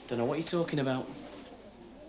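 A young man speaks briefly and casually.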